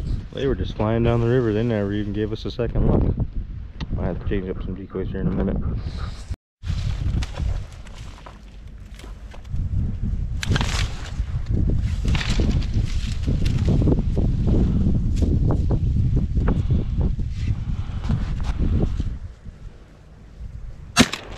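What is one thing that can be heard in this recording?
Wind blows outdoors, rumbling and gusting.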